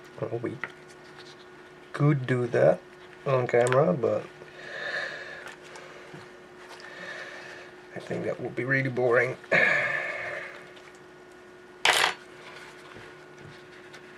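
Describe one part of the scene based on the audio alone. Wet fabric squelches as hands press it into liquid.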